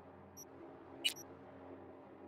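A short electronic blip sounds as a menu opens.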